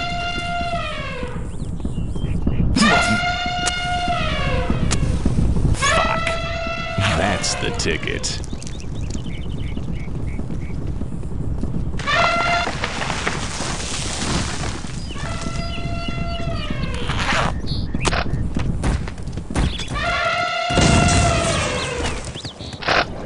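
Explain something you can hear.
Elephants trumpet loudly, again and again.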